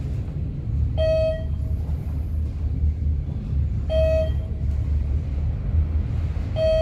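An elevator chime beeps as each floor passes.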